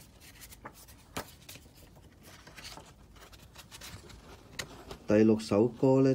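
Paper cards rustle and slide against each other in a hand.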